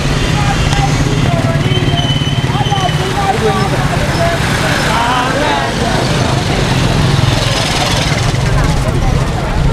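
A crowd of women and men sings and chants.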